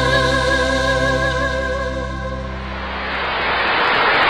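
A band plays a final sustained chord that fades out.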